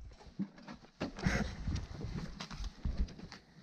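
Items rustle and knock as a hand rummages through a cardboard box.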